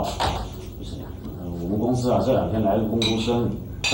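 A man talks in a nearby, conversational voice.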